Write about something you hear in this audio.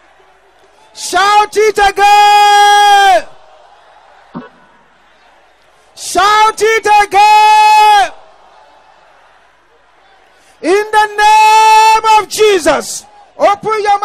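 A man preaches in loud, drawn-out shouts through a microphone.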